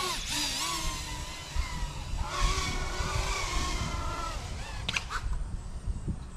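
A small drone's motors whine loudly, rising and falling in pitch.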